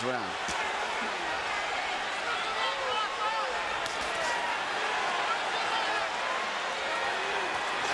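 A large crowd cheers and roars throughout in a big arena.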